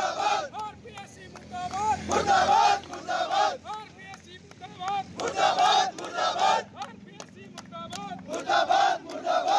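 A crowd of young men chant slogans loudly outdoors.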